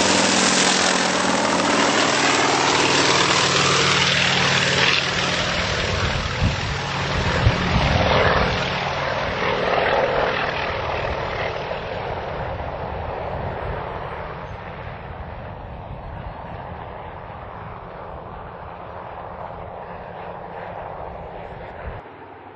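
A helicopter's rotor thumps loudly overhead and slowly fades into the distance.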